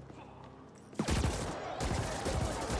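Gunfire bursts loudly.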